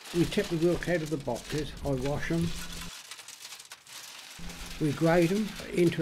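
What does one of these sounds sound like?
Shells clatter and rattle as they tumble.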